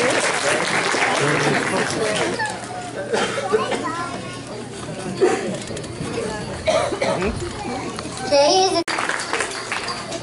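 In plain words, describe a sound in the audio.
Young children chatter and talk in a large echoing hall.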